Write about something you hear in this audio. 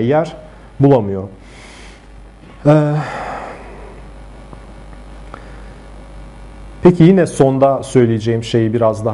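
A man speaks calmly into a nearby microphone, pausing between phrases.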